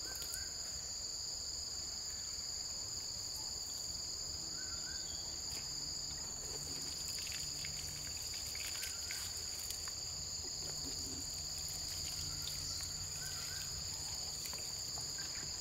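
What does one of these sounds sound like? Water trickles from a watering can into a planter.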